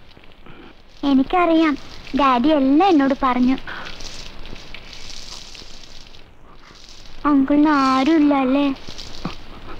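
A young boy sings nearby.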